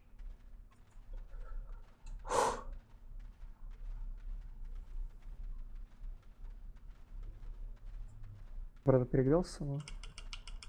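Faint clicks and clinks of fighting sound from a game.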